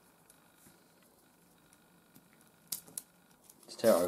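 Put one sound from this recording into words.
Plastic packaging rustles and crinkles softly.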